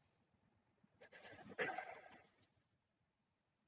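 Dice rattle and roll briefly.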